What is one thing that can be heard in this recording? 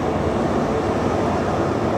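A truck roars past close by.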